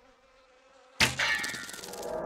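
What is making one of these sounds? A single gunshot cracks loudly.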